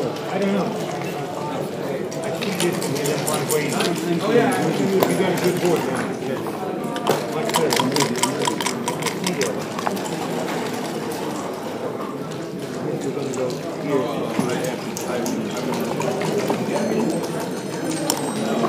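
Plastic game pieces click as they are moved on a wooden board.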